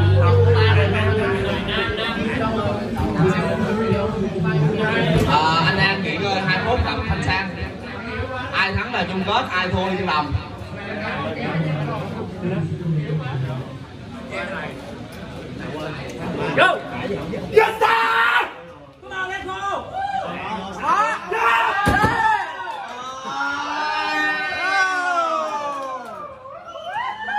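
Several young men talk and call out.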